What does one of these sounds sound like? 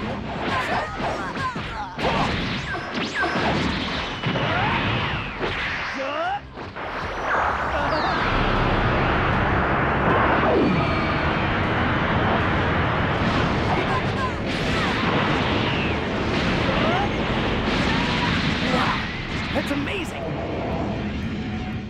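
Punches and kicks thud in quick bursts.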